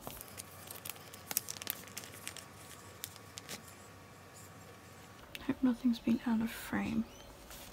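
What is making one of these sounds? Plastic sleeves crinkle and rustle as fingers handle them.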